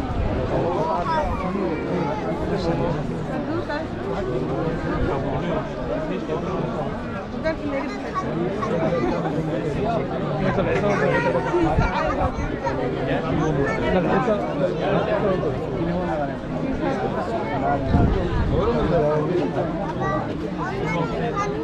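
A large crowd of men and women chatters all around, close by, outdoors.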